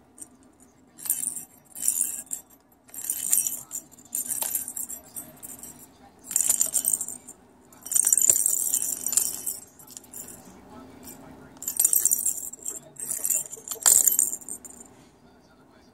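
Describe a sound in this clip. A toy ball with a bell rattles in short bursts as a parrot shakes it.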